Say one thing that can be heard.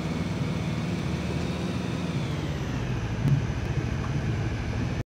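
An armoured vehicle's engine rumbles steadily as it rolls over rough ground.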